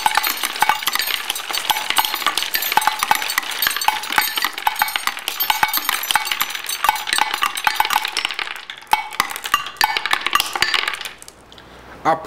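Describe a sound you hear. Many glass marbles clatter and clink as they tumble down a wooden run.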